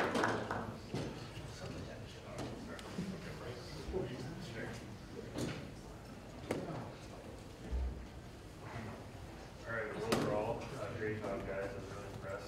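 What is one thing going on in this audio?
People murmur quietly.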